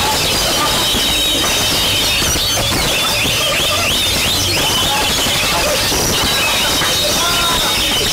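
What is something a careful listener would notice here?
A songbird sings with quick, warbling whistles and chirps.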